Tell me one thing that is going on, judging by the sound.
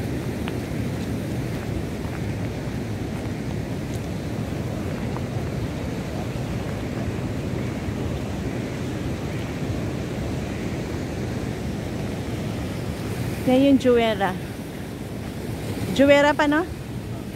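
Strong wind blows steadily outdoors.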